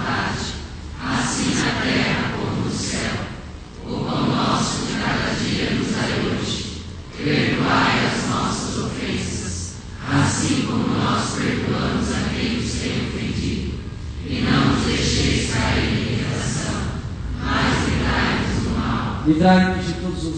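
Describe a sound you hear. A group of men pray aloud together in unison through a loudspeaker.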